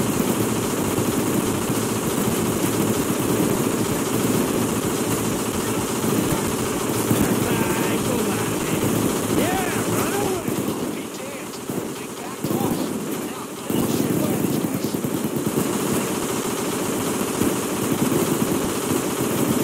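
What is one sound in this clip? A drill grinds loudly into metal.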